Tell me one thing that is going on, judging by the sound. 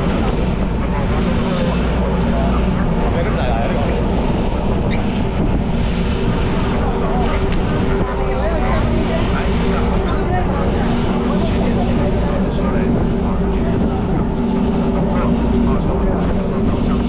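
A crowd of passengers chatters nearby.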